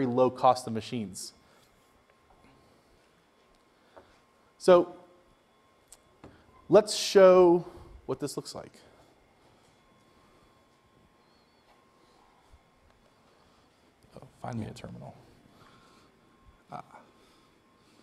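A man speaks into a microphone in a hall, in short bursts with pauses.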